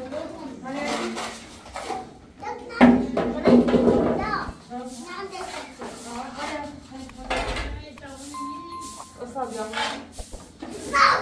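Young children talk and chatter nearby.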